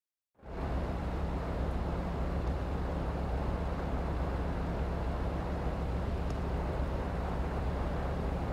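A rally car engine idles with a low, steady rumble.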